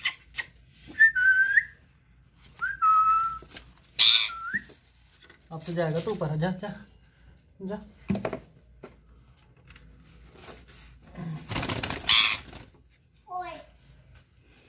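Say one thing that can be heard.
A parrot squawks in short, sharp calls.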